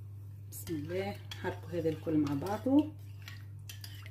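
A fork whisks liquid in a bowl, clinking against its side.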